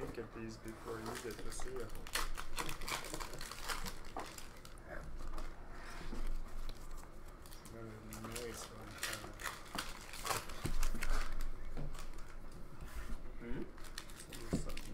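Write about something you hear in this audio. Trading cards rustle and flick as they are sorted by hand.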